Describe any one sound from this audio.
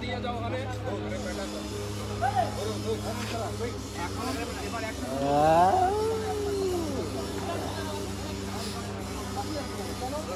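A young man talks loudly.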